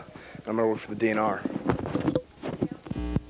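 A young man speaks casually, close by.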